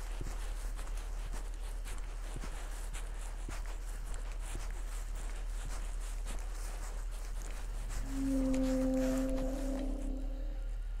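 Footsteps swish through long grass.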